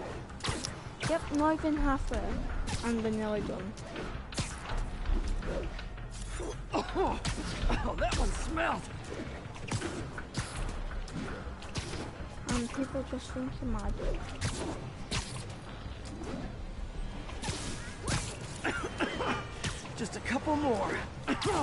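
Rushing whooshes sweep past in quick bursts.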